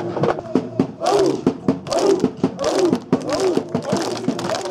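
A group of young men chant loudly together outdoors.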